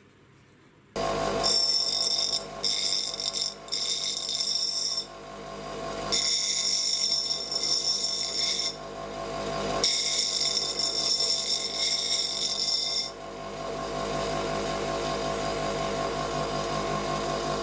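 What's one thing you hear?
A bench grinder motor hums steadily.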